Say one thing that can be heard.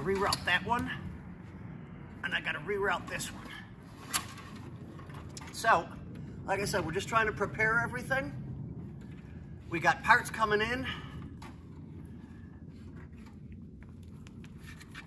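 Wires rustle and click against metal.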